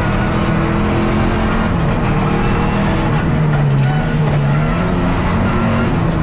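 Tyres rumble over a tarmac road.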